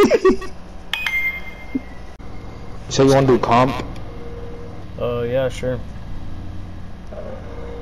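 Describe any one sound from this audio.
A game menu chimes as options are selected.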